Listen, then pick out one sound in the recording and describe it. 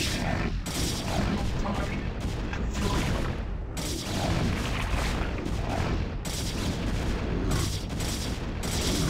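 Small creatures clash in a fight, with rapid bursts of attack sounds.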